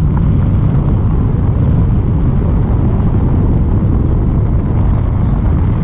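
Wind rushes and buffets a microphone in flight.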